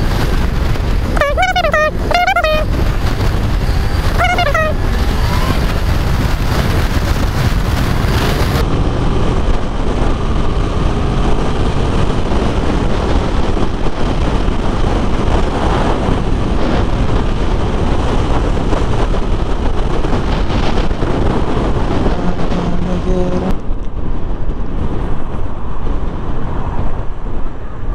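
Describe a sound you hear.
A motorcycle engine hums steadily.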